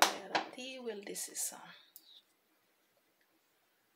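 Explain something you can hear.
A spoon stirs through chopped vegetables.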